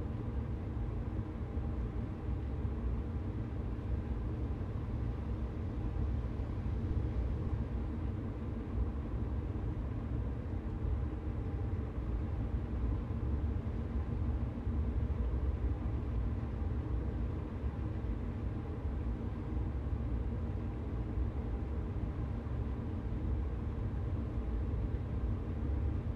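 An electric train hums and rumbles steadily along the rails.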